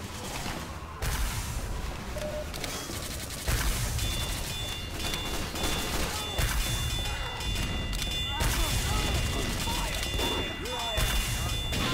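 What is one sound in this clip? A shotgun fires sharp, loud blasts.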